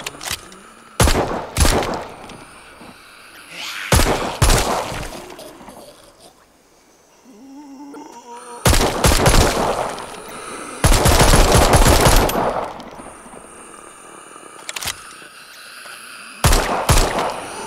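Pistol shots ring out in loud bursts.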